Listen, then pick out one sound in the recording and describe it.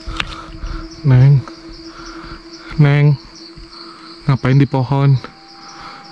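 A small animal calls out in short, bubbling cries.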